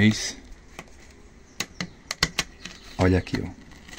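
A wooden lid knocks and scrapes as it is lifted off a box.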